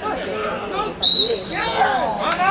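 A referee blows a short whistle blast.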